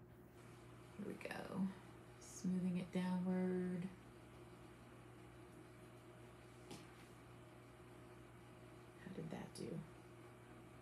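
A woman talks calmly into a microphone.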